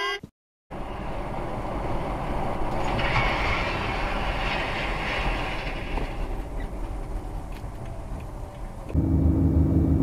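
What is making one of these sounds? A car drives along a wet road with steady tyre and engine noise.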